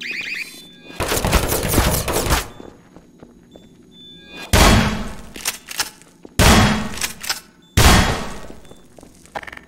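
Loud gunshots blast in bursts, echoing off hard walls.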